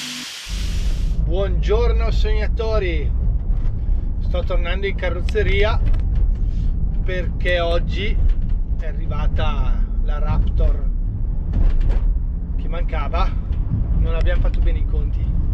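A man talks calmly close up inside a car.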